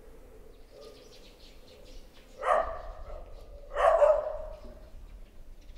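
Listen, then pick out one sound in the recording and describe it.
Wind blows outdoors.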